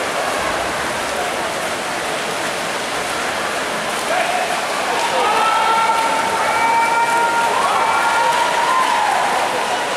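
Swimmers splash steadily through the water.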